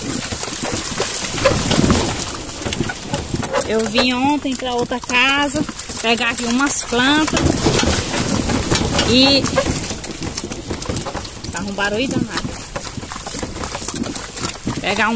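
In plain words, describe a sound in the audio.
A horse's hooves splash and clop through shallow water and mud.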